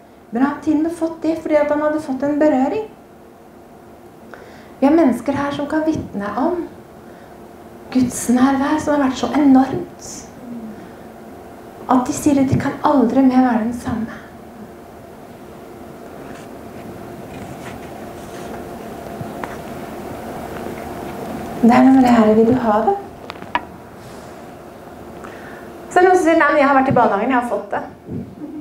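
A woman speaks calmly into a microphone in a slightly echoing room, with pauses between phrases.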